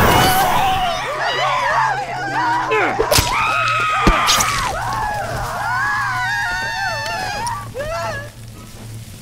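Burning creatures shriek and wail.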